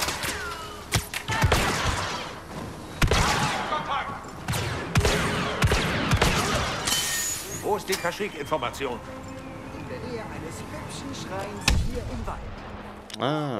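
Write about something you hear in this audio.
Blaster shots crack rapidly.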